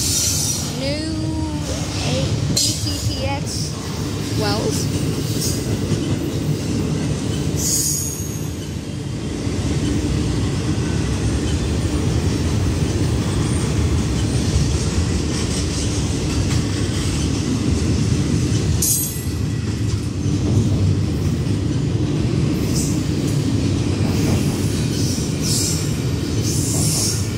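A freight train rumbles steadily past at close range.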